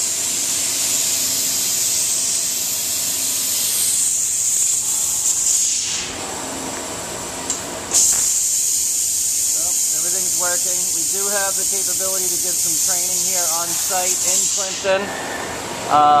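A laser cutting machine hisses steadily, pausing briefly.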